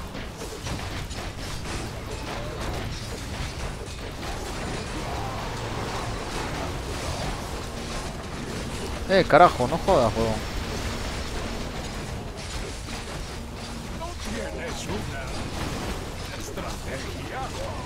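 Game battle sounds of clashing weapons and spells play throughout.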